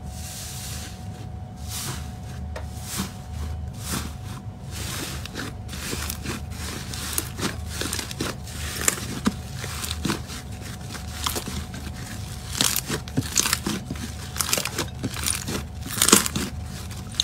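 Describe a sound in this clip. Hands squeeze and squish soft foamy slime with crackling, popping sounds.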